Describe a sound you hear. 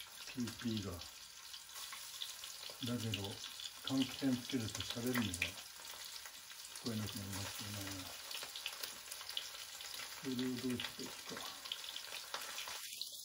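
A metal utensil scrapes and clinks against a pan.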